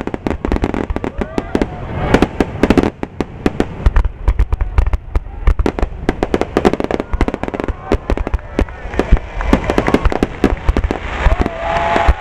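Fireworks boom loudly overhead.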